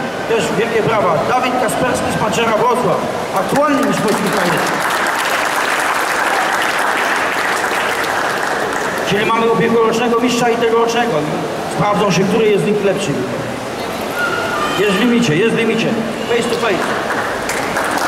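An elderly man announces with animation into a microphone over a loudspeaker in a large echoing hall.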